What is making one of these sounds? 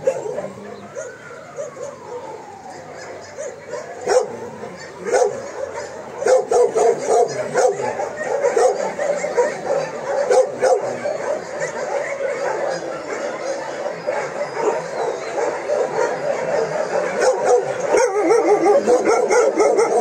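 A gloved hand pats and rubs a dog's fur.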